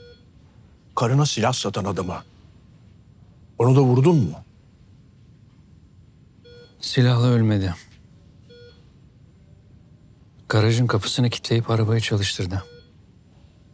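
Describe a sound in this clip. An older man answers in a low, weary voice, close by.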